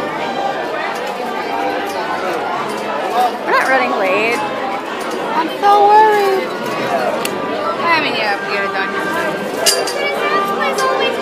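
A crowd of people chatters all around.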